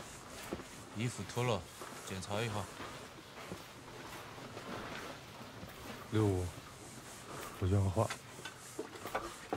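A man speaks firmly, close by.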